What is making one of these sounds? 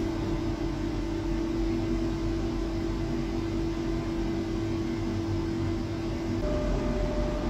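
A subway train's motors hum steadily while it stands.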